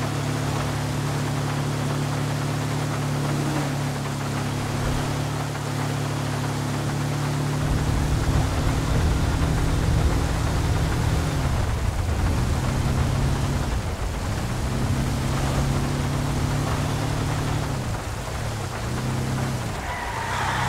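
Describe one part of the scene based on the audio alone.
A car engine hums steadily as the car drives along, shifting pitch as it changes speed.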